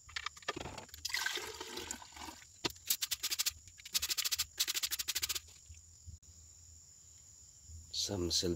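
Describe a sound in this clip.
Thick liquid pours from a bowl into a glass beaker.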